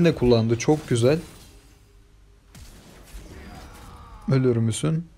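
Magic attacks whoosh and crackle in a fast video game battle.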